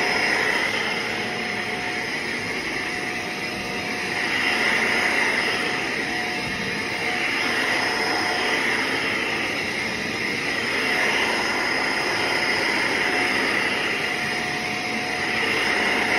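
A vacuum cleaner whirs steadily while running over carpet, its pitch rising and falling as it is pushed back and forth.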